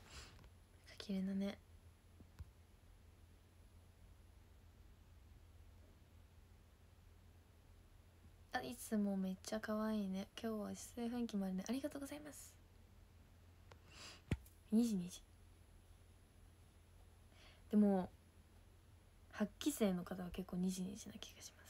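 A young woman talks softly and cheerfully close to a microphone.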